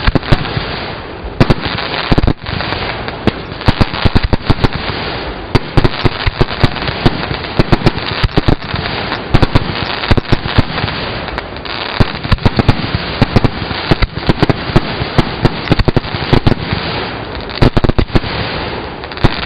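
Fireworks burst with loud cracks and bangs, close by.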